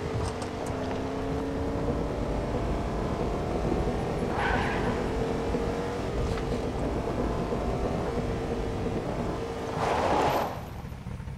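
A pickup truck engine hums steadily as it drives along a road.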